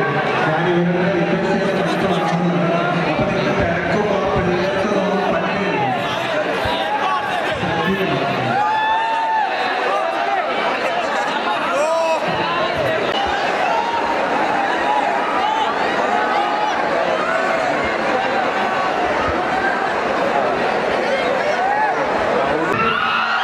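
A large crowd of young men cheers and shouts loudly in a big echoing hall.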